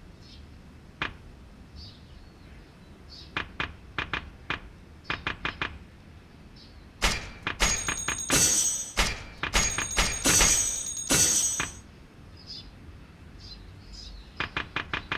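Soft menu clicks tick as a selection moves through a list.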